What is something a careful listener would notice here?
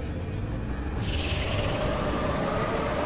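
A vehicle's booster roars with a rushing hiss.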